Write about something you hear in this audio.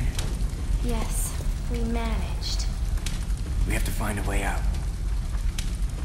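A young man answers in a low, calm voice.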